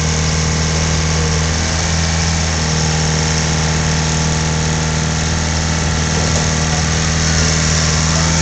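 A diesel engine of a rail maintenance machine rumbles steadily close by.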